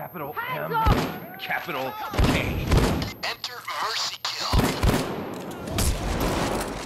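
Gunshots bang sharply, several times.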